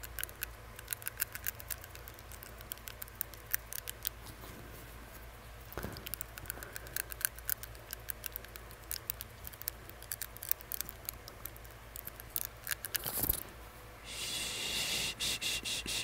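Fingers crinkle and rub a paper face mask close to the microphone.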